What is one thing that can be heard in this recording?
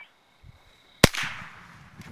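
A firework bangs loudly in the open.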